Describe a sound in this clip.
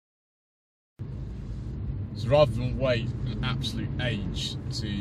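A car engine hums low and steady inside a cabin.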